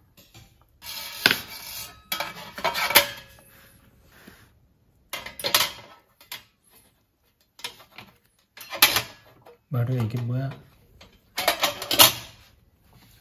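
Metal parts of a camping stove clink and clatter as they are handled.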